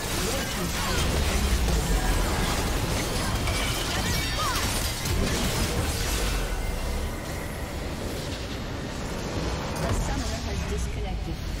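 Game spells and attacks clash and blast in rapid bursts.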